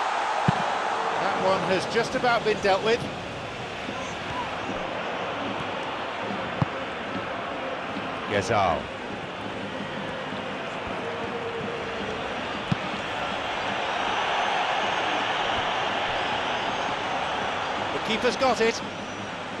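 A large crowd roars and murmurs steadily in a stadium.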